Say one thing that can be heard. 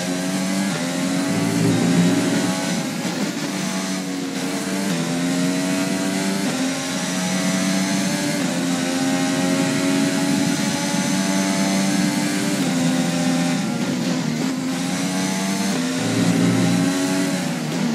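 A racing car engine screams at high revs, rising and dropping in pitch with each gear change.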